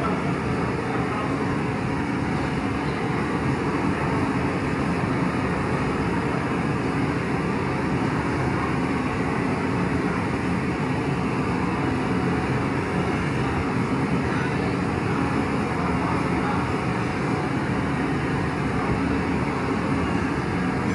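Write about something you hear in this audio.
A gas torch roars steadily close by.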